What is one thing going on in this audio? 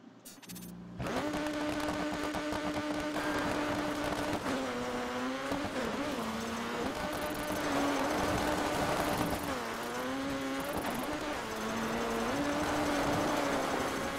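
A rally car engine roars and revs up and down.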